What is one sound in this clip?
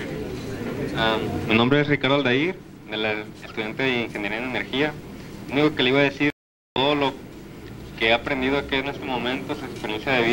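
A young man speaks into a microphone over a loudspeaker in an echoing hall.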